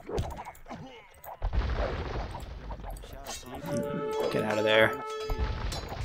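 Swords clash and clang in a small battle.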